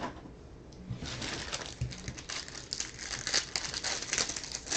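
Plastic wrapping crinkles as it is torn open.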